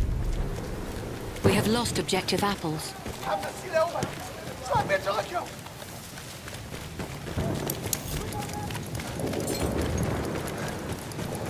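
Footsteps thud steadily on gravel and grass.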